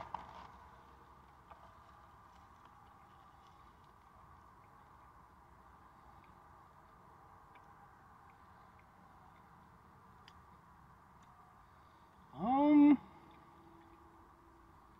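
A man chews food with soft, quiet mouth sounds.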